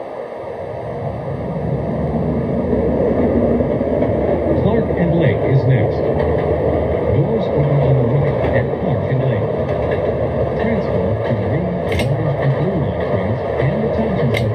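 A train rumbles along the rails, slowly picking up speed.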